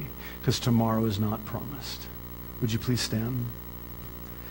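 A man speaks through a microphone in an echoing hall, with pauses.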